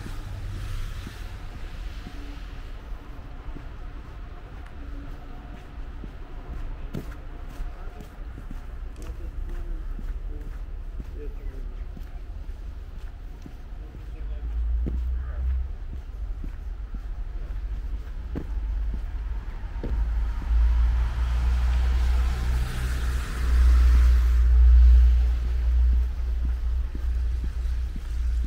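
Footsteps crunch on slushy, gritty pavement.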